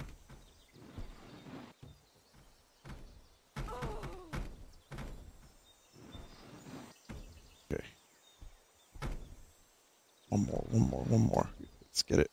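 A wooden catapult swings and hurls a stone.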